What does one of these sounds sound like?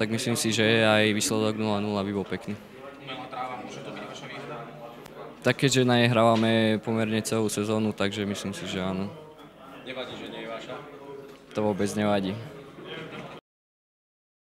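A young man speaks calmly into microphones close by.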